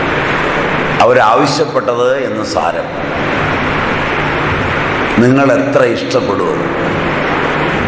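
A middle-aged man speaks warmly in short bursts close by.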